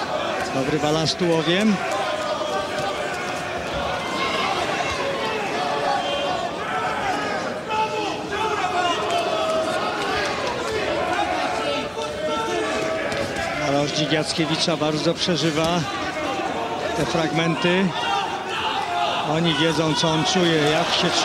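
A large crowd cheers and murmurs in an echoing hall.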